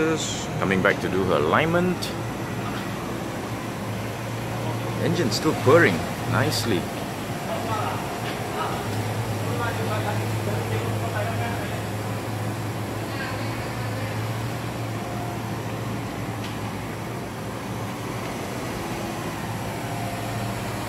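A car engine idles with a low, steady hum as the car creeps slowly closer.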